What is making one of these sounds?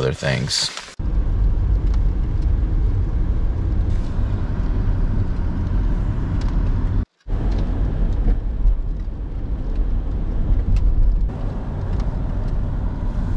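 Rain patters on a car's windshield.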